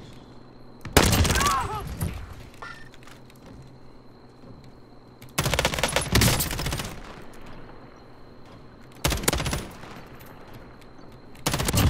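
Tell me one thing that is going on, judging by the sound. A rifle fires in loud bursts of rapid shots.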